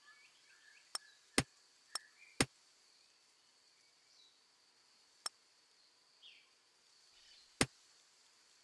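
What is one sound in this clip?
Sharp clicks sound now and then.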